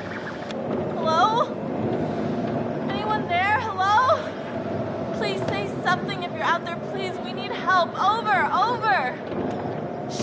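A young woman speaks urgently and distressed, close by.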